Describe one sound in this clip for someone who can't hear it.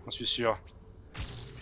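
A young man speaks briefly close to a microphone.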